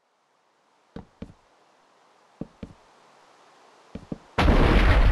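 Wooden chests are set down with short thuds.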